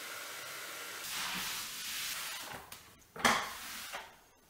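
A mop swishes across a tiled floor.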